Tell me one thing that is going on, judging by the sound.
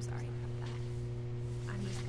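Paper rustles softly under a hand.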